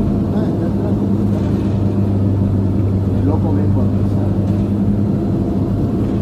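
A vehicle engine hums steadily while driving along a street.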